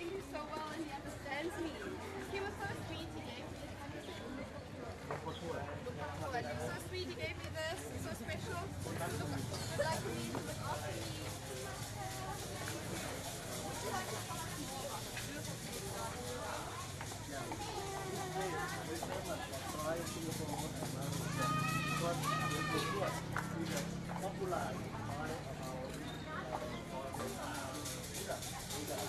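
A crowd of young women chatter and talk nearby outdoors.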